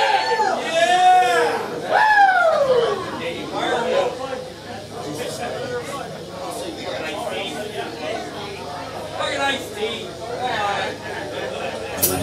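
A drum kit is played.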